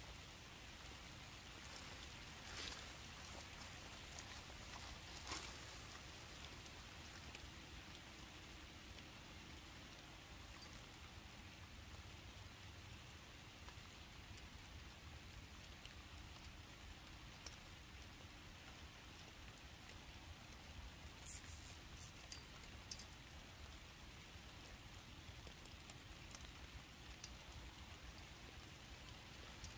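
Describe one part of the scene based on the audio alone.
Leaves and plastic sheeting rustle softly as a person handles plants.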